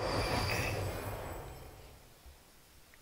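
A magical whoosh swells and fades.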